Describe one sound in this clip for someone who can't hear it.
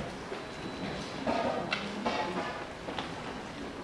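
A woman speaks on a stage in a large hall, heard from far back.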